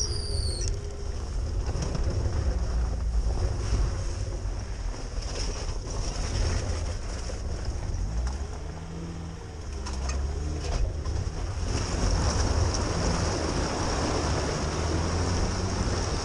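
Tyres squelch and splash through mud and puddles.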